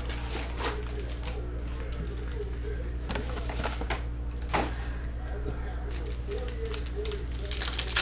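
Card packs rustle and tap as they are stacked.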